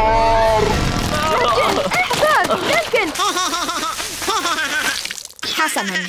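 A baby giggles and squeals.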